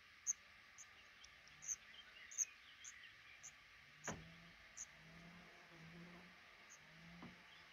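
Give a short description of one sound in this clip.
Baby birds chirp in short, high peeps from a nest.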